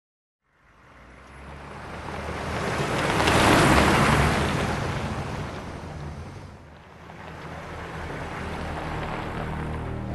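A vehicle engine roars closer and then fades away.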